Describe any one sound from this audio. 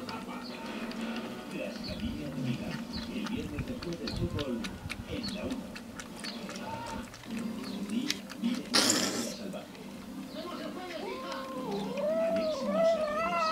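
Several cats chew and lap food noisily from a bowl.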